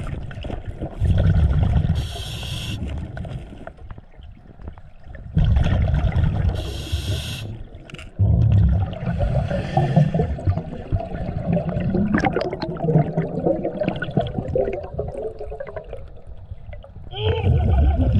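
Air bubbles gurgle and rumble loudly from a diver's breathing gear underwater, in repeated bursts.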